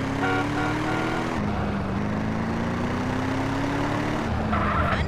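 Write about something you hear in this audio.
A car engine hums steadily and shifts gear as the car speeds up.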